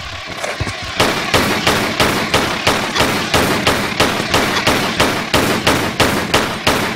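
Pistols fire rapid, regular shots.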